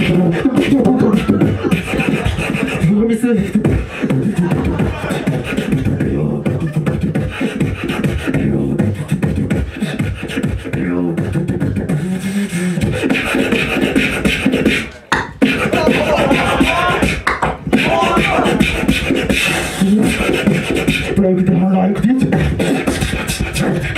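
A young man raps rapidly into a microphone over a loudspeaker.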